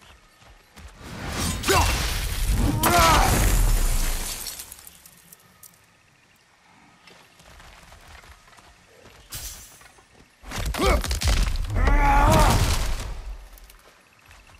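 An axe strikes wood with heavy thuds.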